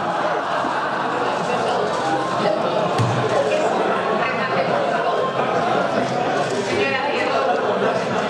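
A crowd of people talk and murmur in the background.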